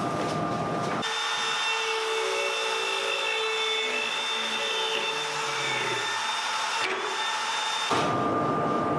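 A power router whines as it cuts into wood.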